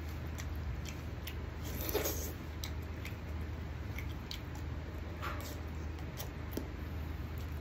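A man chews and smacks his lips loudly close to a microphone.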